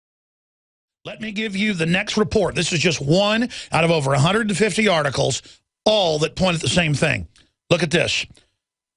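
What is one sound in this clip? A middle-aged man speaks forcefully and with animation into a close microphone.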